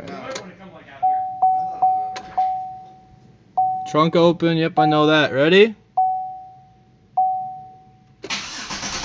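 A car's warning chime dings repeatedly.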